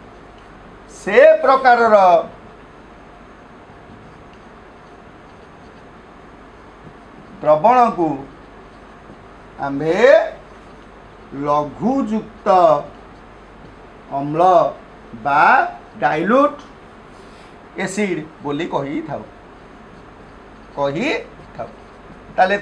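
A man speaks slowly and clearly, in short phrases with long pauses.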